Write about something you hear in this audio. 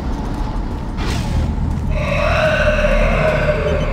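A heavy metal door slides open with a hiss.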